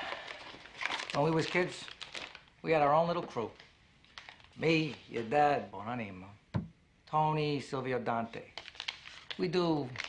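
Paper rustles as a man tears open a packet.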